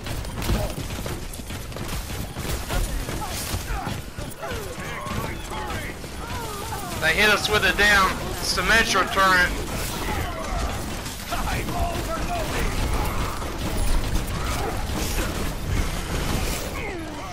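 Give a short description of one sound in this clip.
Guns fire rapidly in a video game.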